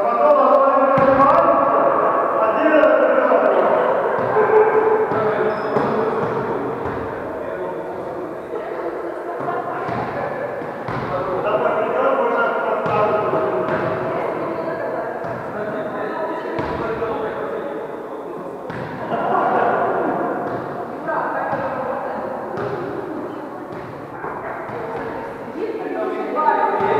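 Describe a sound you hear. Men talk and call out loudly in an echoing hall.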